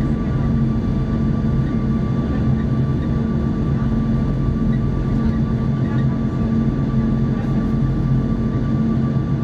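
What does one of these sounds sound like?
Jet engines roar loudly and steadily from close by.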